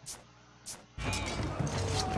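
Swords clash with metallic clangs.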